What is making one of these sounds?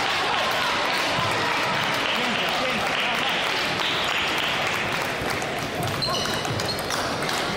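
A ping-pong ball clicks back and forth on paddles and a table.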